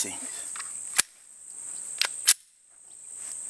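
A handgun fires sharp shots outdoors.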